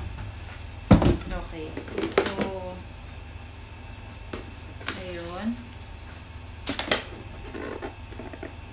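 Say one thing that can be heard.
A plastic tub thumps and rattles as it is handled.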